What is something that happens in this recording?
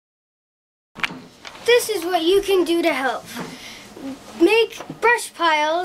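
A young boy speaks close by with animation.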